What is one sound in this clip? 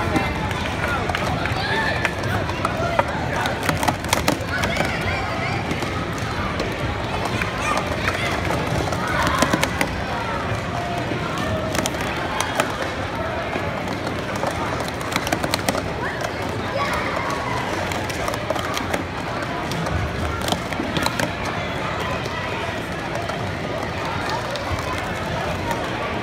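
A crowd of children chatters and calls out throughout a large echoing hall.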